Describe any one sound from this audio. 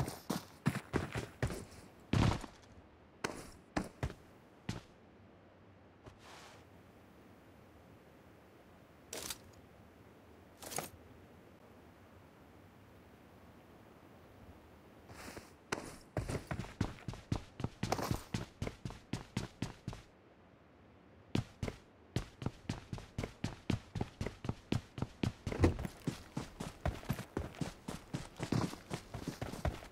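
Quick footsteps thud on hard floors.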